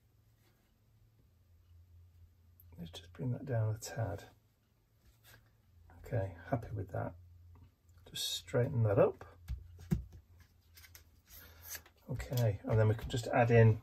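Hands rub and smooth down paper.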